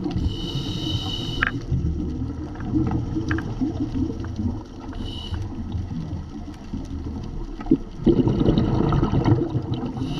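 Water rumbles and murmurs steadily in a muffled underwater hush.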